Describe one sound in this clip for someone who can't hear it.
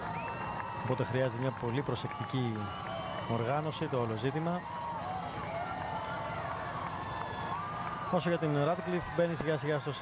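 A crowd cheers and shouts along the roadside.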